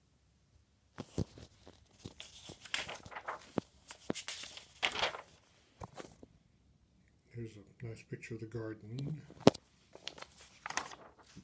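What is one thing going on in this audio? Paper pages rustle as they are turned by hand.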